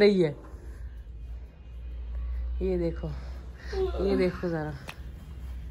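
A middle-aged woman speaks in a drawn-out, sleepy voice close by.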